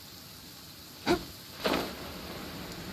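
A sharp whoosh bursts out as a glider snaps open.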